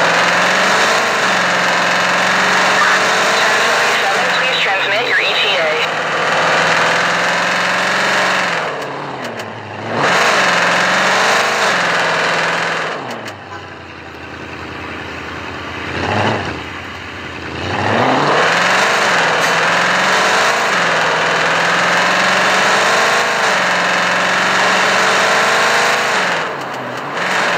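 A car engine roars, rising and falling in pitch as the car speeds up and slows down.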